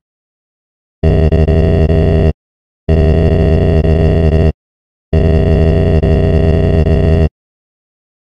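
Low droning synthesized tones sound in steady bursts, each ending abruptly.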